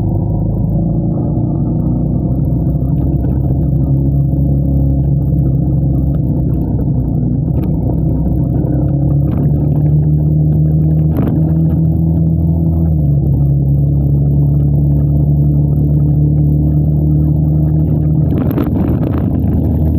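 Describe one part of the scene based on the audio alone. A motorbike engine drones steadily close by, shifting pitch as it rides.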